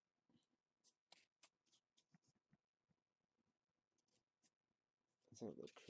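Fingers handle a stiff trading card with faint rustling.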